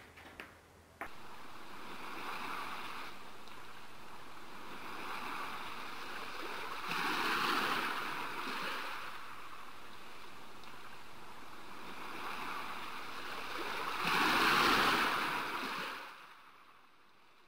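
Waves wash onto a sandy shore.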